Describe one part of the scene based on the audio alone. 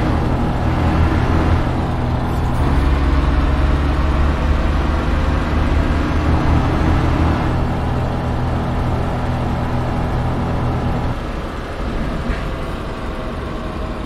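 Tyres roll along a road with a constant rush.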